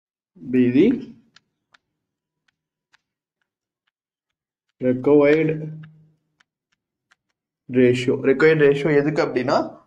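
A man speaks calmly and clearly, close by, in short bursts.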